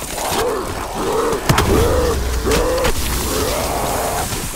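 A monster growls and snarls close by.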